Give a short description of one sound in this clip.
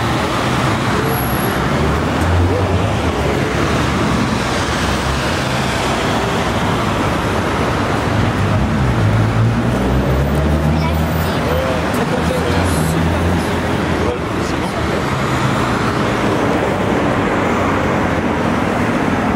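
Footsteps tap on pavement as people walk.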